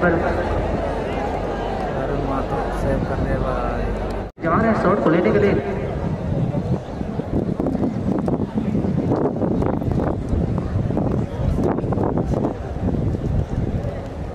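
A large outdoor crowd chatters and calls out loudly.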